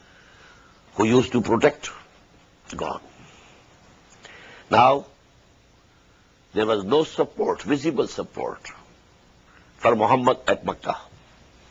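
An elderly man speaks calmly and deliberately into a close microphone, with pauses between phrases.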